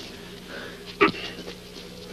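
A punch lands with a sharp thud.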